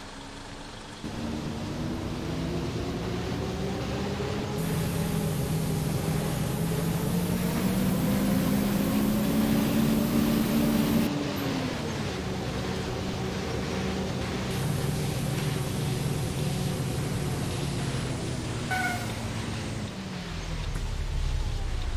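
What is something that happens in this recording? A bus engine hums and rises in pitch as the bus speeds up, then drops as it slows.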